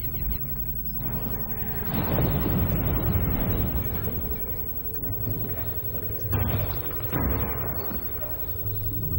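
Clothing scrapes and shuffles over a stone floor as someone crawls.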